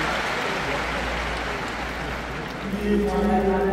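A large crowd murmurs and rustles in a vast open stadium.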